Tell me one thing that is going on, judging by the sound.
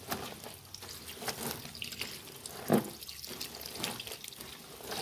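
Wet clothes rustle and squish as a hand presses them into water.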